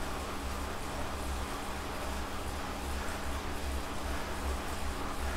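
An indoor bike trainer whirs steadily with a low pulsing hum.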